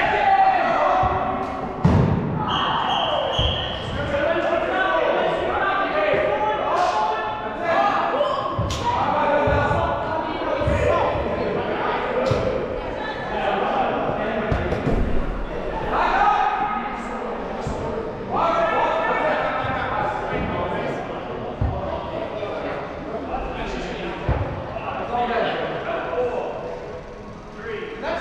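Young players shout and call out to one another in a large echoing indoor hall.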